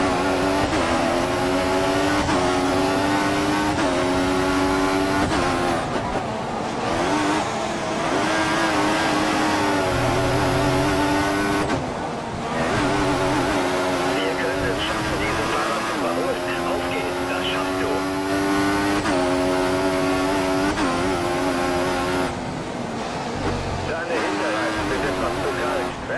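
A racing car engine screams at high revs, rising in pitch through each gear and dropping at each gear change.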